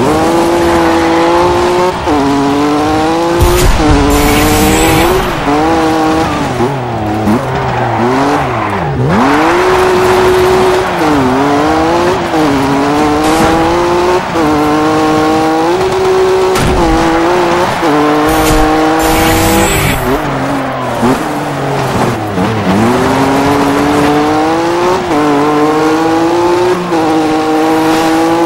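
Gravel sprays and rattles under a car's tyres.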